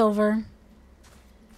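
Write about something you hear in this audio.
A young woman speaks briefly into a close microphone.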